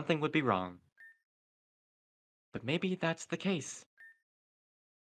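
A short electronic chime beeps twice.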